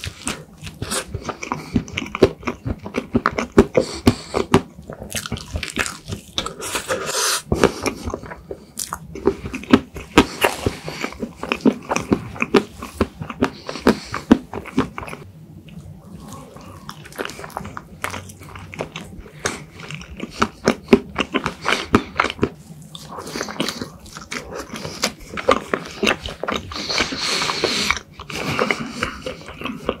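A young man chews soft, creamy food wetly and close to the microphone.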